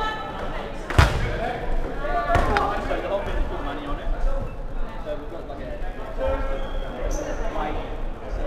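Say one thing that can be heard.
A ball thuds as it is struck and bounces.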